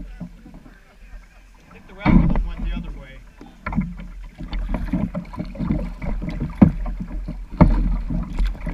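Water splashes and laps against a kayak's hull.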